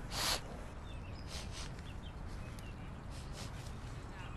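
Leaves and grass rustle as a man pushes through bushes.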